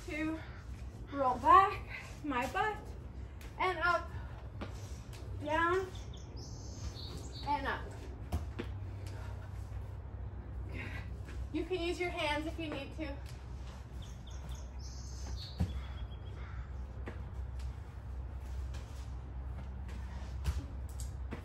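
A person's feet thud on a mat as they land from jumps.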